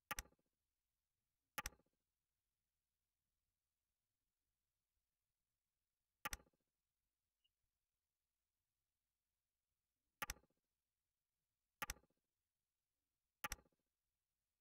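A short electronic click sounds each time a part snaps into place.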